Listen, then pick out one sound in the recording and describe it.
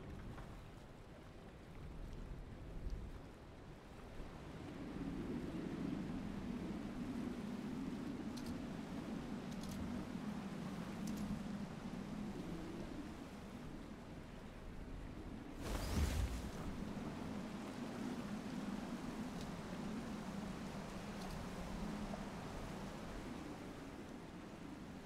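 Waves wash and rush around a boat.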